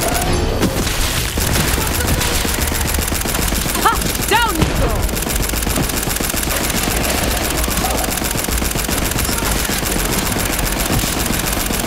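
Small explosions and energy blasts crackle.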